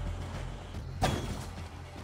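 A blade strikes with a sharp metallic clash.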